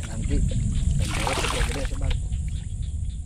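Water pours and splashes from a bucket into a stream.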